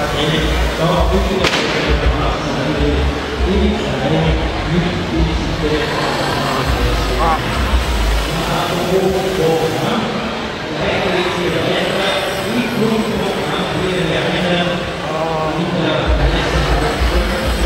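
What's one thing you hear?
A man talks nearby.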